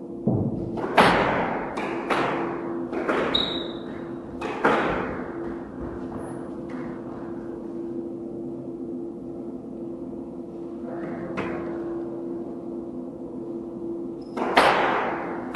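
Rackets strike a squash ball with sharp cracks.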